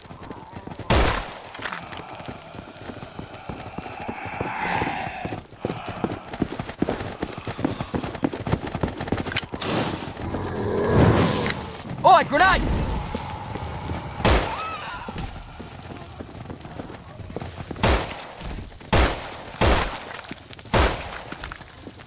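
Rifle shots ring out in single bursts.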